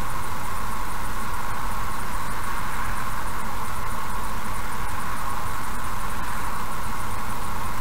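Tyres rumble steadily on the road.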